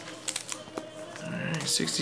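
A card pack's wrapper crinkles in hands.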